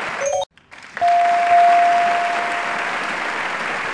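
A steady electronic tone sounds as a letter is revealed.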